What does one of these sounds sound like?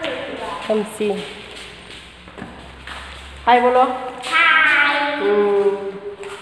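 A woman speaks close by in a friendly voice.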